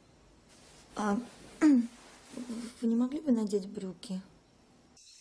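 A young woman speaks quietly and tensely nearby.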